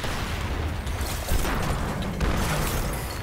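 Ice shatters and crackles in a burst.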